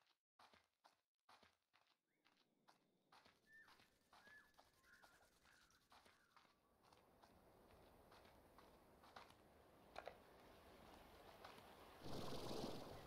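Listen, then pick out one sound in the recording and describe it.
Footsteps thud quickly across hard ground and wooden boards.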